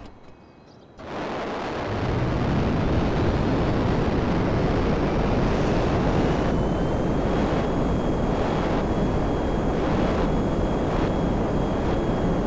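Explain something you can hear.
A jet engine roars loudly and steadily.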